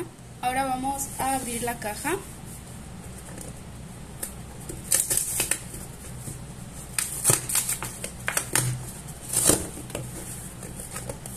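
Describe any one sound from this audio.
Hands rub and tap on a cardboard box.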